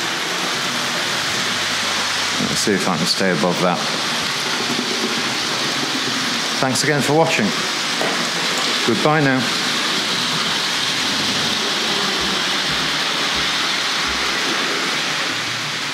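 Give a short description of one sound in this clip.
A model train whirs and rattles steadily along its tracks.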